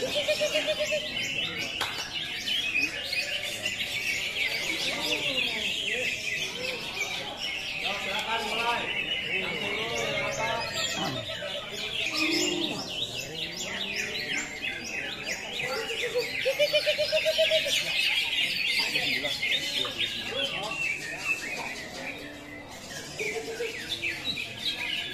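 Several birds give pitched whistling calls.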